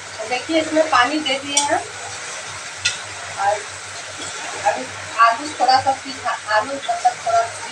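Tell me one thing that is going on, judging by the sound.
A metal spatula scrapes against a wok.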